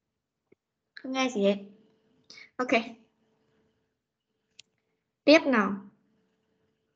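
A child speaks in short bursts through an online call.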